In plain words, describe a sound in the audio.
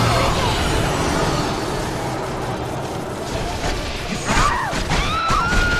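Metal blades clash and swing.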